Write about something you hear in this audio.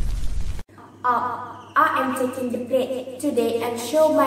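A girl speaks clearly and calmly into a close microphone.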